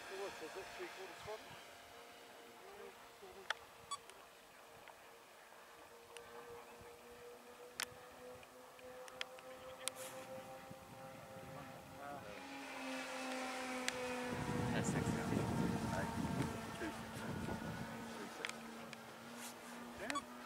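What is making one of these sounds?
A propeller plane's engines drone overhead, growing louder as it passes close by.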